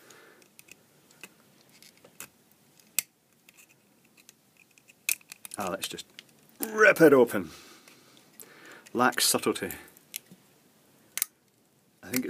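Small pliers click and snap against hard plastic.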